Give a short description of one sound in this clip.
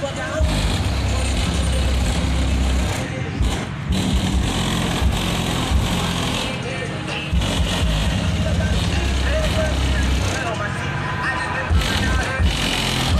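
A car engine rumbles steadily at idle nearby.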